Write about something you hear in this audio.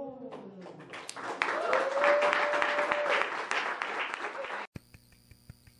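A small audience cheers.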